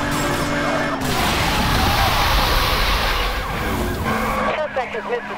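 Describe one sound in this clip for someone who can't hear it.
Tyres screech and grind as a car hits spikes.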